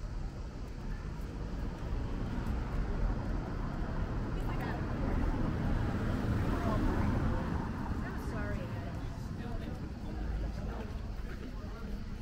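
Footsteps walk on a paved street.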